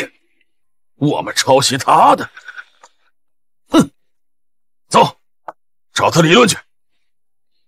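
A middle-aged man speaks sternly, close by.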